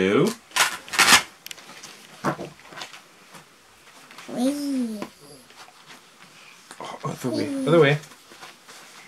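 A young boy talks and chatters close by.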